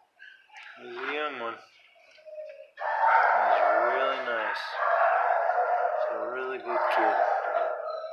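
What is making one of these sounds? A dog whines in high, wavering cries.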